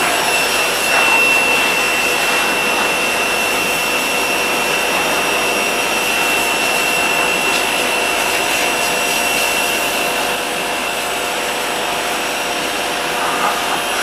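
A pressure washer sprays water onto a car's engine.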